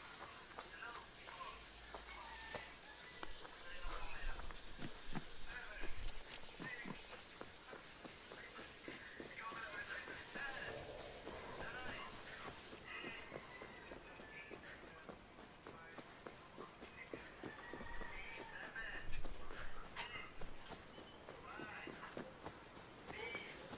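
Footsteps crunch on dry ground and grass.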